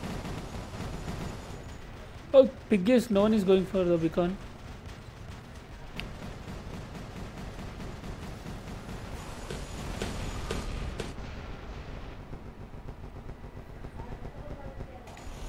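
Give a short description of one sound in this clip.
Guns fire in bursts.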